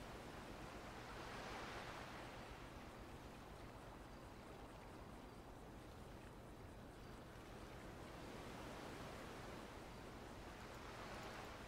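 Waves wash softly onto a shore, swelling and fading.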